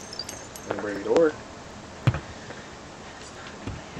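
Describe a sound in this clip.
Glass shatters as a wooden crate breaks through a window.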